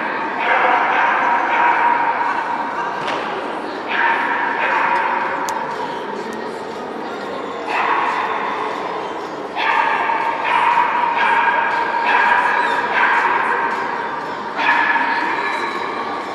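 A young woman calls out commands loudly in a large echoing hall.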